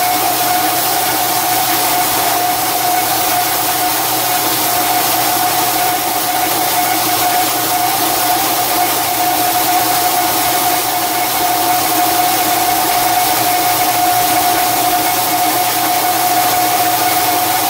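A cutting tool scrapes and whines against spinning steel.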